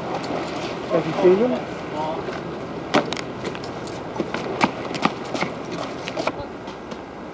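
Skateboard wheels roll and clack over concrete.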